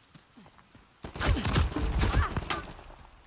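Gunshots crack in a rapid burst nearby.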